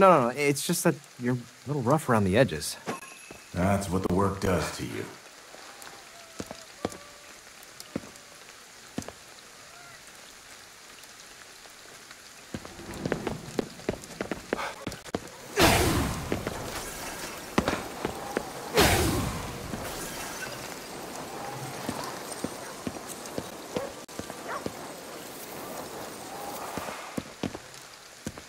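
Rain patters steadily.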